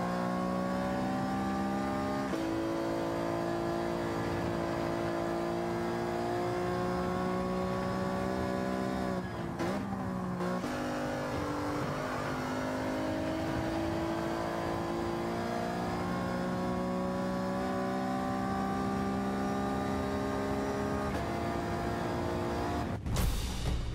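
A racing car engine revs high, climbing in pitch and dropping at each gear change.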